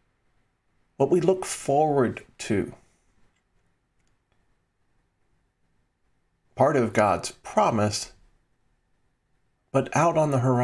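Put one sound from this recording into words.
A middle-aged man speaks calmly and warmly into a close microphone, in short phrases with pauses.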